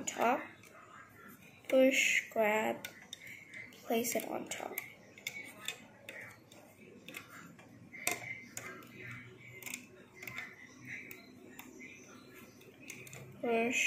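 Rubber bands snap and click softly against a plastic loom.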